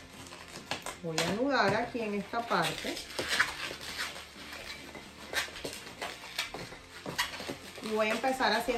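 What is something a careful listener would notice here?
Rubber balloons squeak loudly as they are twisted and rubbed.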